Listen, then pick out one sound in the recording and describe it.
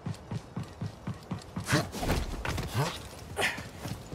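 A heavy landing thumps after a jump.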